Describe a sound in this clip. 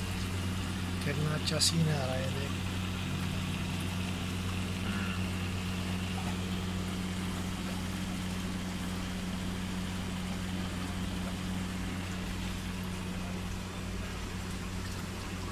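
Air bubbles fizz and gurgle steadily in water.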